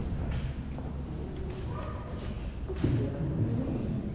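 A man and a woman talk quietly at a distance in a large echoing hall.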